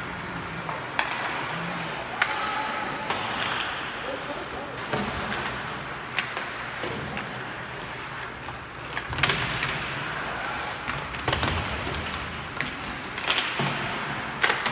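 Hockey sticks clack against a puck in sharp knocks.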